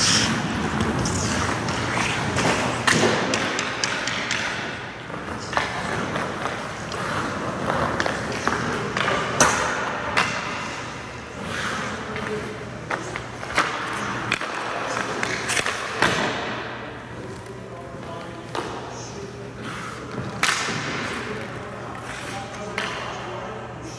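Ice skates scrape and carve across the ice in an echoing indoor rink.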